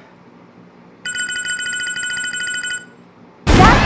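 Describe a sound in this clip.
Rapid electronic beeps tick from a loudspeaker.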